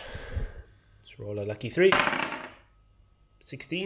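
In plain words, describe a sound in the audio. A small die clatters onto a wooden table.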